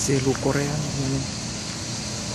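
A young man speaks briefly close by.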